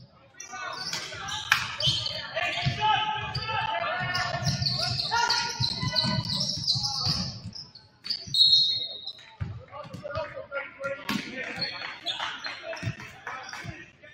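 A basketball bounces with dull thuds.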